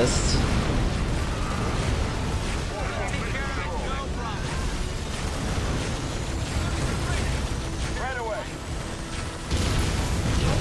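Gunfire and laser blasts crackle in a battle.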